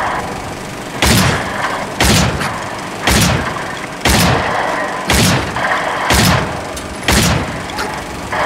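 A rifle fires loud single shots that echo in a room.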